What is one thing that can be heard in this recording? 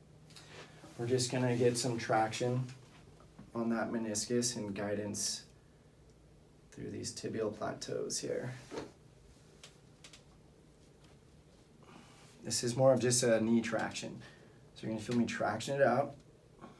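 A man speaks calmly and close by, explaining in short bursts.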